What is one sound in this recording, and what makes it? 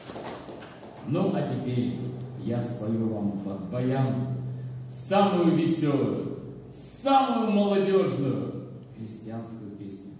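An elderly man sings into a microphone in an echoing room.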